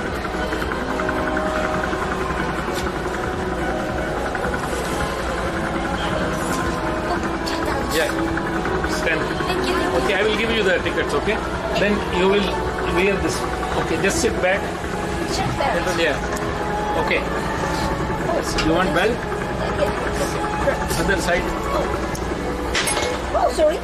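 Electronic game machines chime and play music in the background.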